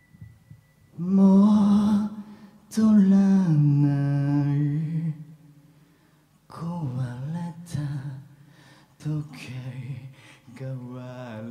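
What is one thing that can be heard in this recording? A singer sings loudly through a microphone over a sound system.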